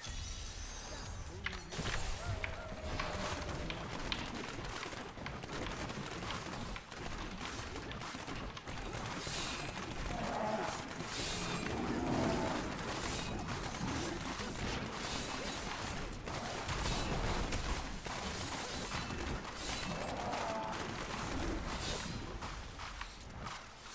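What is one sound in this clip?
Game spell effects crackle and whoosh in rapid bursts.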